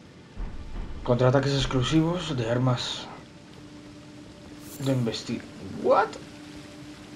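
A young man talks with animation into a close headset microphone.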